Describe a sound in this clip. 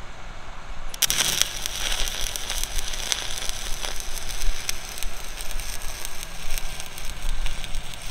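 An arc welder crackles and sizzles steadily.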